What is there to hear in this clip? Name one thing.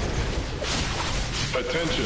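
Electric energy crackles and zaps in a video game.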